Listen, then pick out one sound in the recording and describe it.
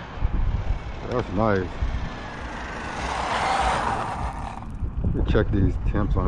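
The brushless motor of an electric radio-controlled truck whines as it drives.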